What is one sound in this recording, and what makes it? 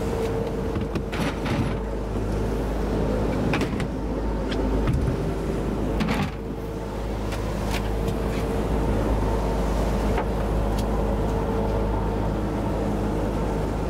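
Wind blows loudly outdoors.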